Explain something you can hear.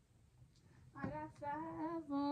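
A young woman sings briefly close by.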